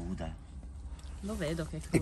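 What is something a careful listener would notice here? A young man chews food with his mouth open.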